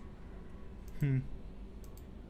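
A short electronic menu tone chimes.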